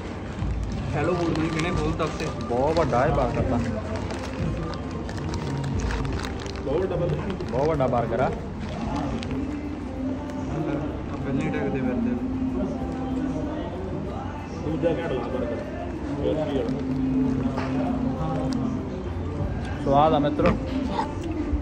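Paper wrapping crinkles and rustles.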